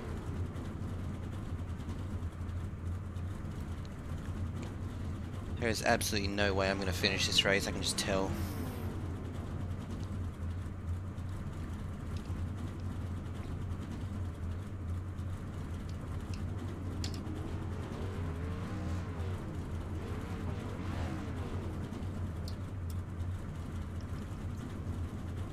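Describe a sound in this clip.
A race car engine hums steadily at low revs.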